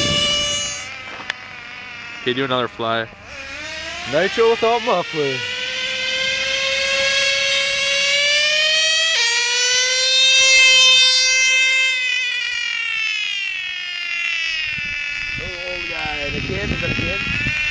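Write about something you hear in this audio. A toy car's electric motor whines loudly, rising and falling in pitch as it speeds along the road.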